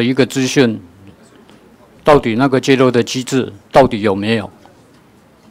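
A middle-aged man speaks into a microphone with animation.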